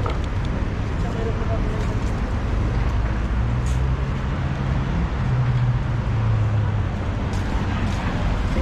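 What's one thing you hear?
A scooter motor hums steadily as it rides along.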